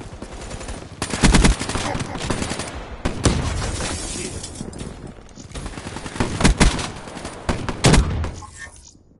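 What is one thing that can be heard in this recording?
Gunshots crack sharply in quick bursts.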